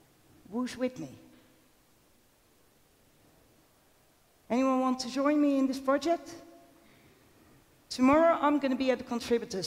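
A woman speaks with animation into a headset microphone, with pauses.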